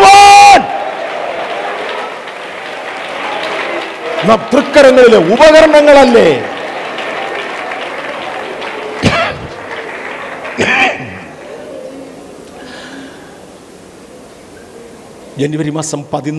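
An elderly man preaches emphatically through a microphone in a large echoing hall.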